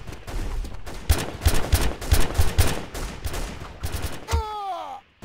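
Gunshots crack nearby in quick bursts.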